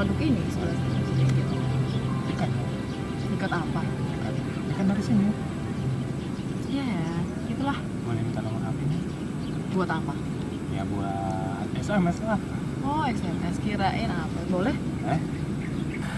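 A young woman talks with animation nearby.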